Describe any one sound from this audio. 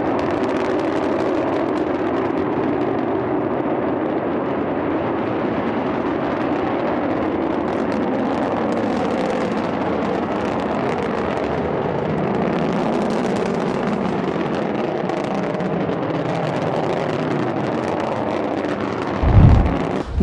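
A rocket engine roars steadily as a rocket lifts off.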